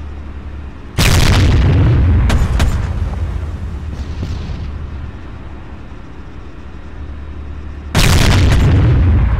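A tank cannon fires with deafening booms that echo and roll away.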